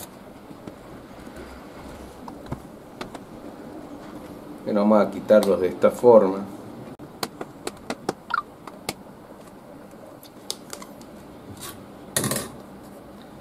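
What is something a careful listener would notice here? A cardboard box rustles and taps in a man's hands.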